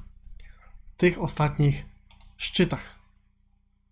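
A man speaks calmly and briefly into a close microphone.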